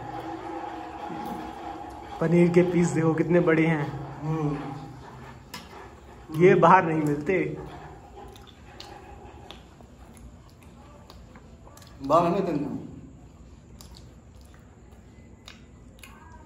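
Men chew food noisily, close by.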